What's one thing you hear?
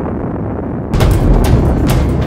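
A helicopter flies overhead with a whirring rotor.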